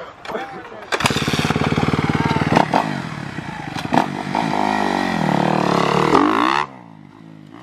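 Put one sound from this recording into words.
A dirt bike engine revs loudly up close.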